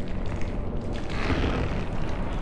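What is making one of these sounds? A creature growls and snarls close by.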